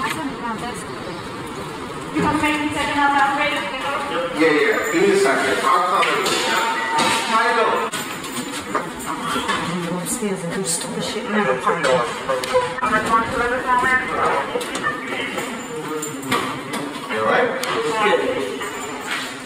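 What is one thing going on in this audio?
Footsteps walk along a hallway floor.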